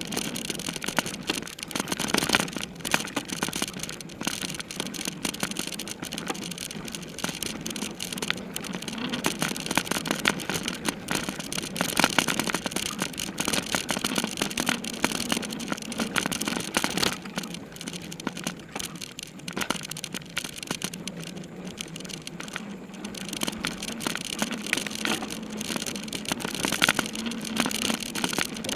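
Bicycle tyres roll and crunch over a bumpy dirt trail.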